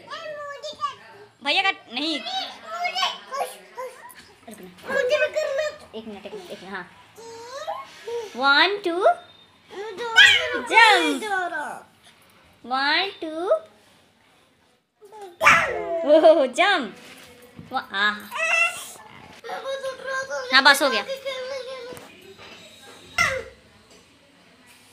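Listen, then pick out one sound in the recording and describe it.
A young child talks and shouts excitedly close by.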